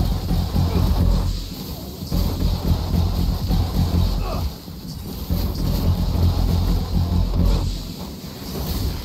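Gunfire and explosions roar in heavy combat.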